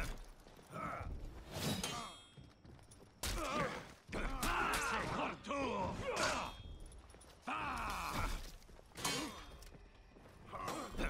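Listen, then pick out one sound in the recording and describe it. Metal blades clash and clang repeatedly.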